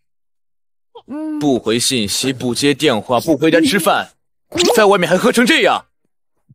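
A young man scolds sternly, close by.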